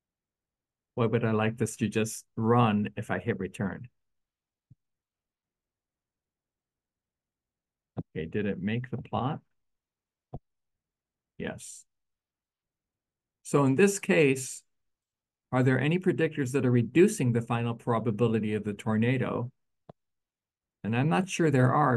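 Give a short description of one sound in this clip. A man talks calmly into a microphone, in short bursts with pauses.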